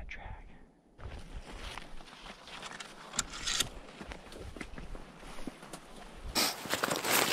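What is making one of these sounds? Branches of snowy conifers brush and rustle as someone pushes through.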